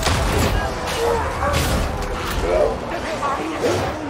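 A heavy blade hacks into flesh.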